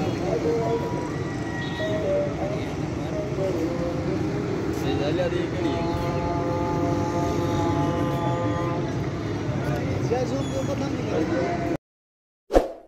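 Busy city traffic rumbles and hums from far below.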